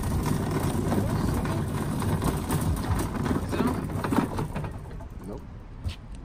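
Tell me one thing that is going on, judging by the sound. Shopping cart wheels rattle and rumble over asphalt.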